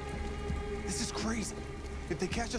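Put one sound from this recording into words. A young man speaks tensely and quietly.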